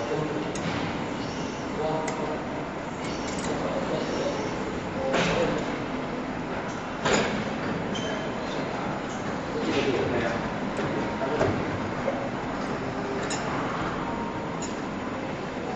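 Metal tools clack sharply as they snap into place.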